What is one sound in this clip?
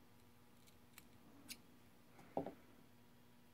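Small metal pliers click sharply a few times.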